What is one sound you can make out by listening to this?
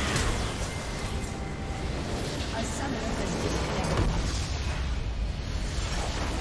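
Video game spell effects whoosh and crackle in a fight.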